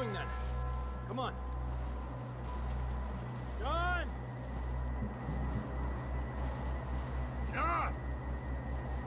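Boots crunch through snow at a steady walking pace.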